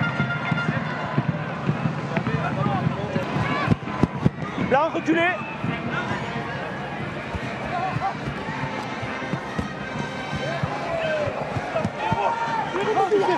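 A large crowd cheers and chants in a stadium.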